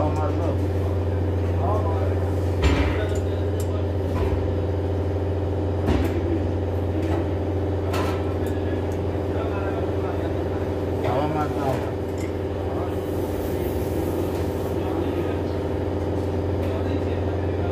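A steady low engine hum drones throughout.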